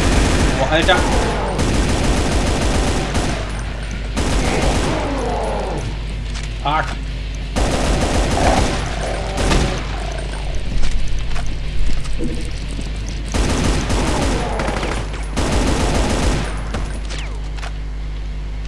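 Rapid gunfire blasts in bursts.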